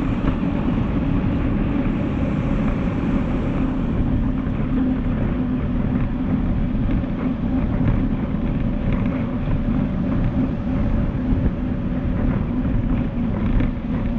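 Bicycle tyres hum on a hard floor.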